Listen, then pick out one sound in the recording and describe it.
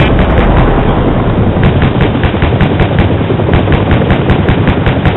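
A helicopter engine roars with its rotor thumping steadily.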